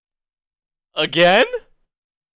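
A young man exclaims loudly in surprise close to a microphone.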